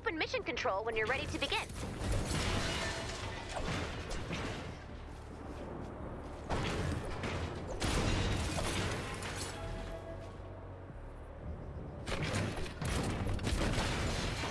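A pickaxe clangs repeatedly against metal.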